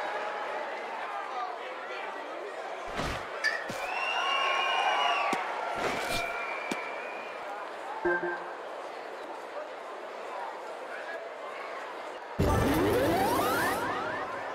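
A crowd murmurs and cheers in a stadium.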